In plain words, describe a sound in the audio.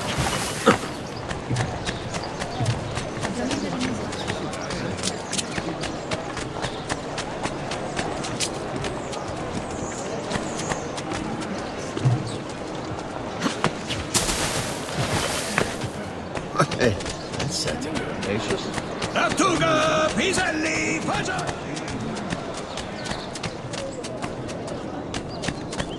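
Quick footsteps run across stone paving.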